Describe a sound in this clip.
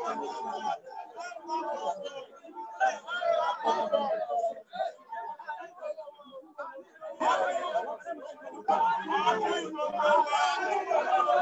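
A crowd of men chants loudly outdoors.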